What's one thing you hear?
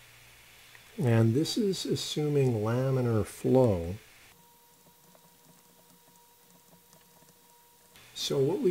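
A man speaks calmly into a microphone, pausing between phrases.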